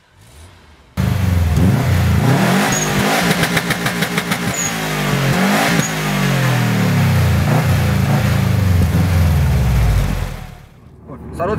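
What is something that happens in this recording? A car engine revs hard and loud, rising and falling.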